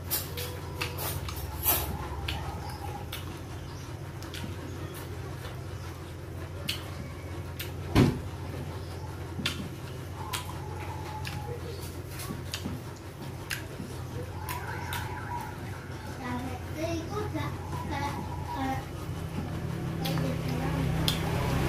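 Fingers squish and crunch through food in a stone bowl.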